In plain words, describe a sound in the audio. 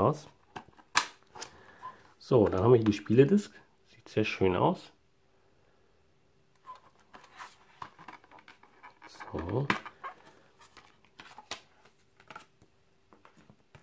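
A plastic disc case clicks and rattles as it is handled.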